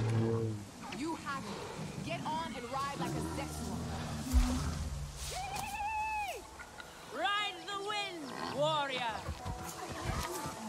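A large animal gives high, warbling calls.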